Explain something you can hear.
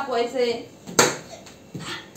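A metal pot lid clanks against a pot.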